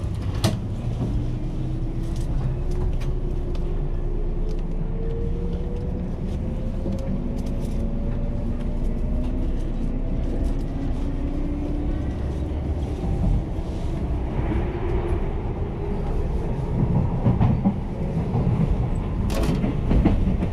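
An electric train motor whines, rising slowly in pitch as the train picks up speed.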